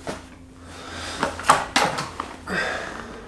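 A man's foot thumps and knocks against furniture.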